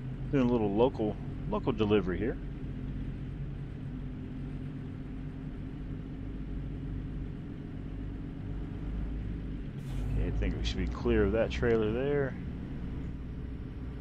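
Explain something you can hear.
A truck engine rumbles low and steady.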